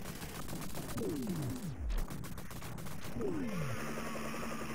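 Falling bombs whistle downward in pitch.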